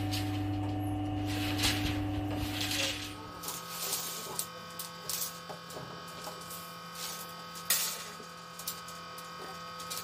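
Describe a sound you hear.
Steel bars clank against each other.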